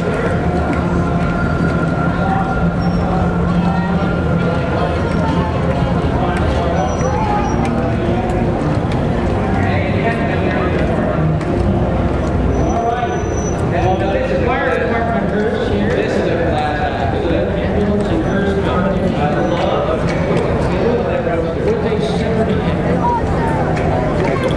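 A crowd of men and women chatters and murmurs outdoors.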